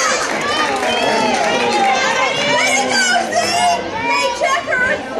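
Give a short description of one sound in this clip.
Young women shout and cheer excitedly across an open field.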